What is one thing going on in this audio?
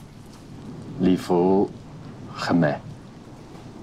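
A young man speaks calmly and warmly nearby.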